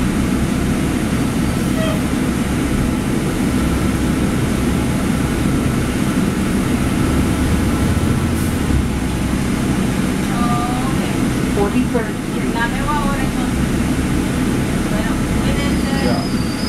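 A bus engine rumbles steadily as the bus drives down a street.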